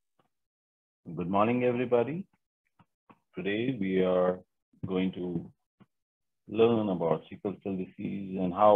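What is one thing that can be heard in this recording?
A man speaks calmly through a computer microphone, as on an online call.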